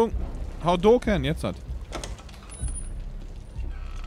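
A door knob turns with a metal click.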